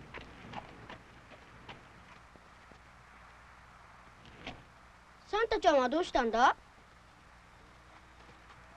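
A horse's hooves clop on a dirt road.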